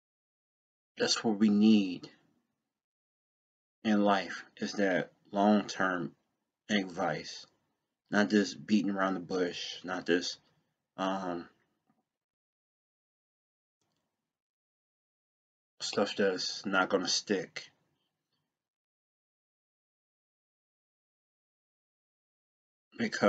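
A young man talks calmly and close to a microphone, in short bursts with pauses.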